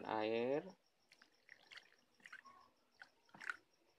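Water pours into a stone bowl.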